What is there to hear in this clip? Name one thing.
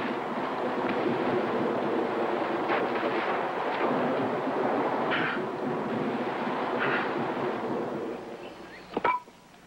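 Steam hisses loudly from an engine.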